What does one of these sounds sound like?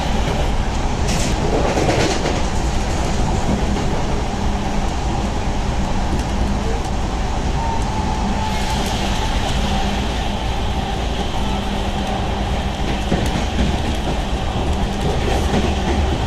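Rain patters against a train window.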